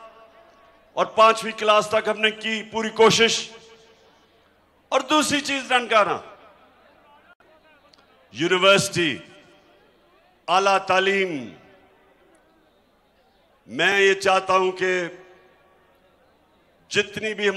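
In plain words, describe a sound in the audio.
A man speaks forcefully into a microphone over loudspeakers, in short bursts with pauses.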